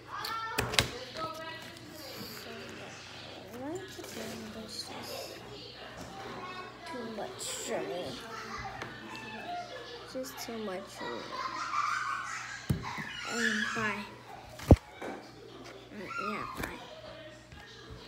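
A young girl talks casually close by.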